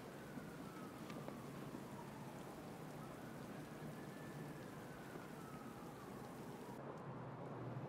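A cloak flaps in a gusting wind.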